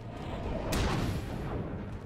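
A heavy punch lands with a loud thud.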